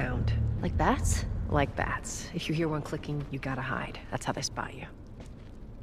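A young girl speaks calmly nearby.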